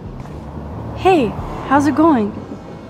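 A young woman speaks casually and calmly nearby.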